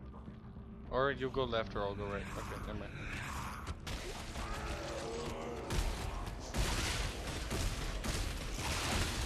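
A weapon fires sharp, rapid shots.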